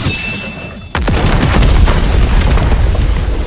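Loud fighting sound effects crash and boom.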